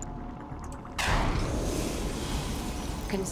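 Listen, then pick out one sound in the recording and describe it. A laser blast zaps loudly.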